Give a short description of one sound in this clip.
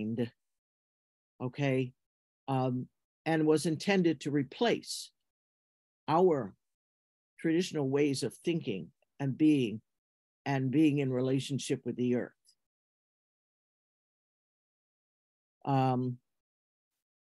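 An elderly woman speaks calmly and slowly, in pauses, through an online call.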